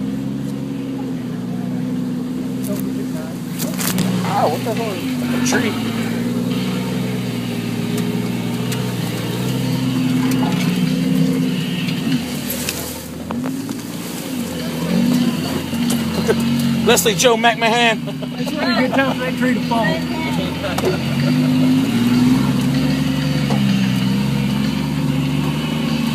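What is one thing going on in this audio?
A vehicle engine rumbles steadily, rising and falling as it labours over rough ground.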